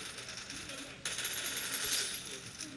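A gun fires a short burst of shots.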